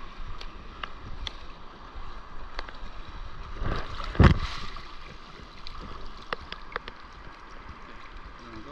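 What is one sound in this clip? Water laps and splashes close by, outdoors.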